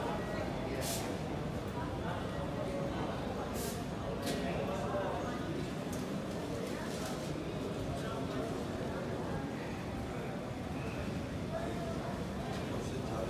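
A low murmur of distant voices echoes through a large hall.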